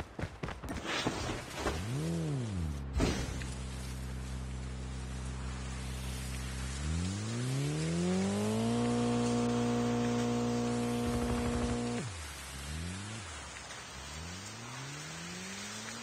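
Skateboard wheels roll along a paved road.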